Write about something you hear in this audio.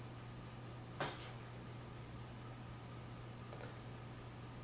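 A lip gloss wand clicks against its tube.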